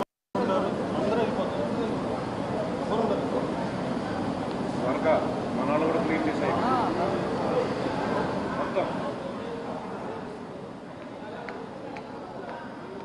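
A crowd of men chatters close by outdoors.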